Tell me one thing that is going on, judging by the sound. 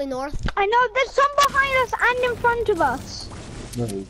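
A pickaxe strikes a tree with a hard knock.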